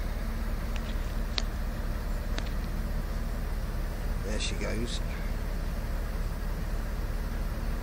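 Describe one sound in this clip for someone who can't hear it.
A crane's engine idles with a steady low rumble.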